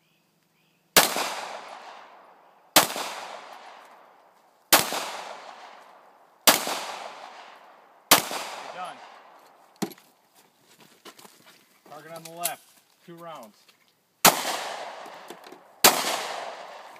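A handgun fires loud single shots that ring out and echo outdoors.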